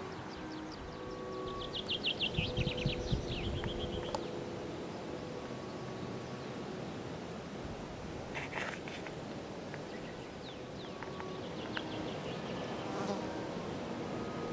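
Wind rustles through the grass outdoors.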